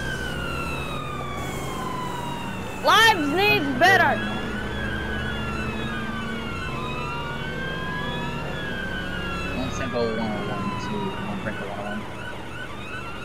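A police siren wails with rising and falling sweeps.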